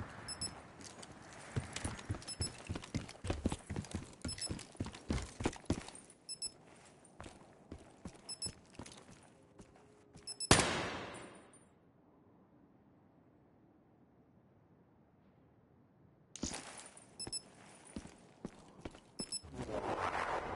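Gunshots crack in quick, sharp bursts.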